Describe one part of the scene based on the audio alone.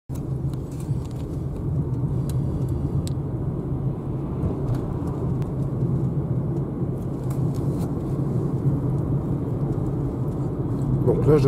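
A car rumbles steadily from inside the cabin while driving.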